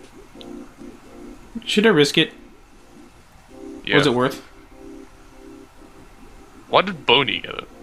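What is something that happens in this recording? Soft chiptune game music plays.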